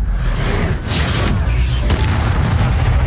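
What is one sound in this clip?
A magic spell crackles and bursts with a loud rumble.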